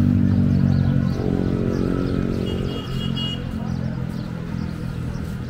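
Traffic rumbles steadily along a nearby road, outdoors.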